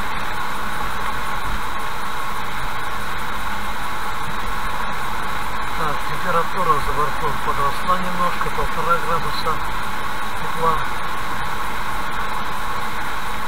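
A car drives steadily along a road with a constant hum of engine and tyres.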